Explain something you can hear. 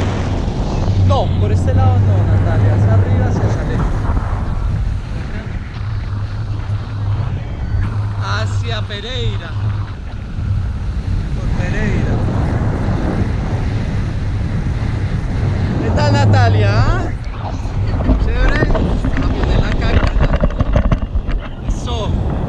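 A man talks with animation close by, his voice partly buried by the wind.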